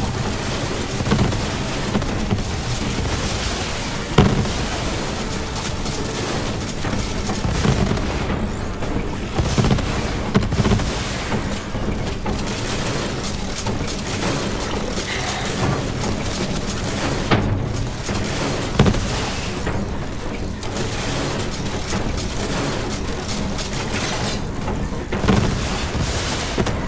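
Guns fire in short bursts, with sharp cracks.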